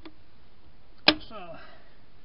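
A metal wrench clanks sharply against a wheel nut.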